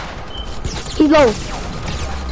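A gun fires in short bursts.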